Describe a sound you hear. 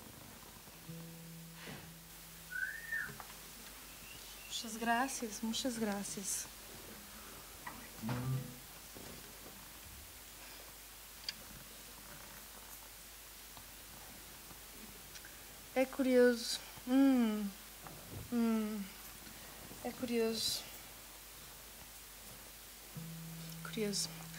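A guitar is plucked softly.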